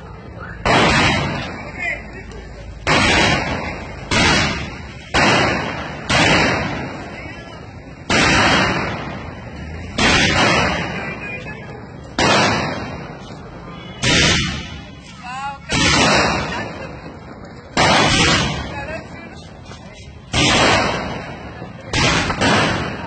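Fireworks bang loudly overhead, again and again.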